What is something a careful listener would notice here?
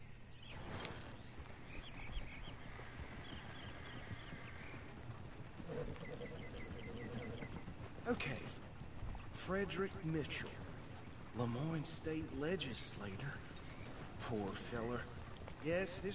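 Horses' hooves thud on soft ground.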